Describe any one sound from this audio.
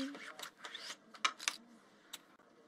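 Cards slide and tap on a table.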